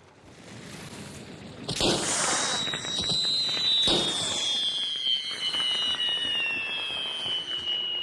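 Fire crackles and roars.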